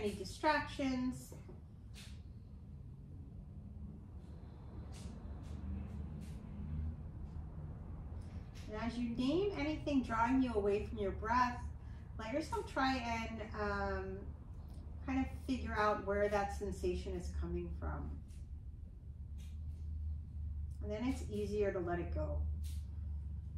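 A woman speaks softly and calmly, with long pauses.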